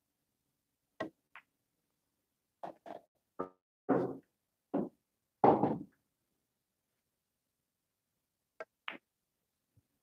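Billiard balls click sharply against each other.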